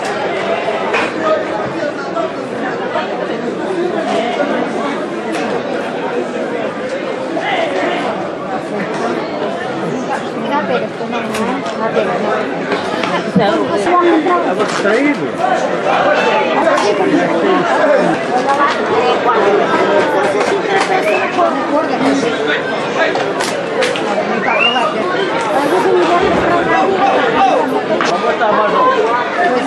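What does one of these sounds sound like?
A crowd of people chatter and shout outdoors.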